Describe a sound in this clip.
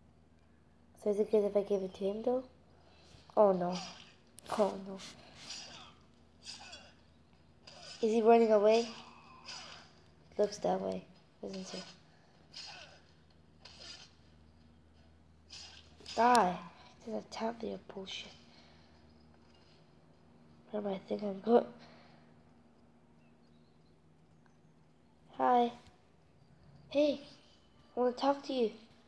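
A boy talks with animation, close to the microphone, in short bursts.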